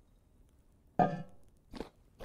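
A wooden lid thumps open.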